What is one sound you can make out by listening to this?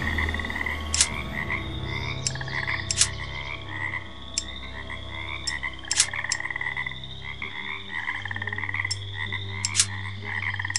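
Heavy metal rings click and grind as they turn.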